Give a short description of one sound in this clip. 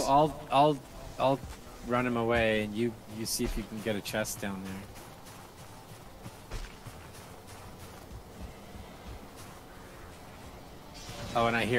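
Footsteps crunch slowly through snow.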